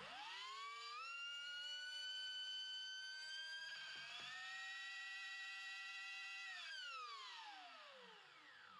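An electric motor whines, rising in pitch, holding a high steady tone, then winding down.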